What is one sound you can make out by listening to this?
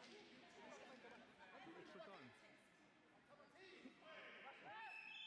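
Many men and women chatter at once in a large echoing hall.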